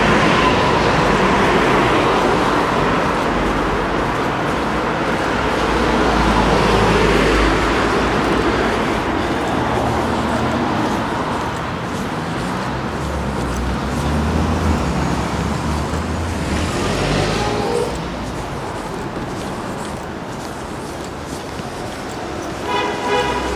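Traffic hums steadily along a street outdoors.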